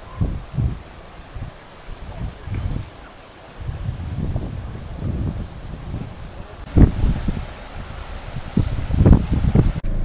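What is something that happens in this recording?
Wind gusts buffet outdoors with low rumbling bursts.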